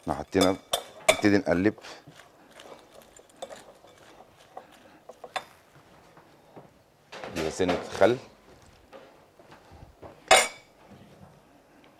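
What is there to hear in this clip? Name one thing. A spoon clinks against a glass bowl while salad is tossed.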